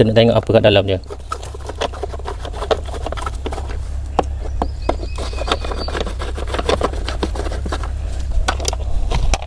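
A screwdriver scrapes and clicks against a plastic box.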